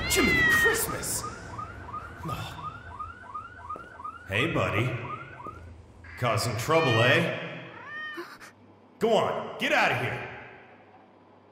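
A young man talks into a close microphone with animation.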